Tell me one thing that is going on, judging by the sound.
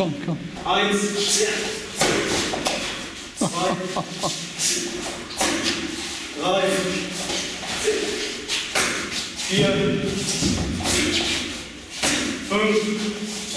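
Bare feet thud and slap on a padded floor.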